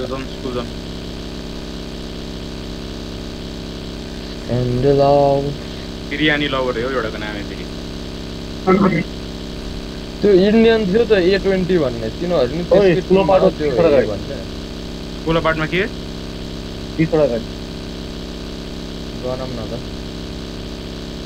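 A buggy engine drones steadily.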